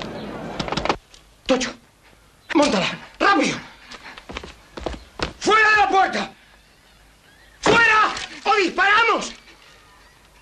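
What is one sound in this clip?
A middle-aged man speaks loudly and with animation nearby.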